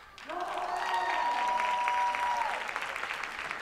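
Young girls in the audience cheer with high-pitched shouts.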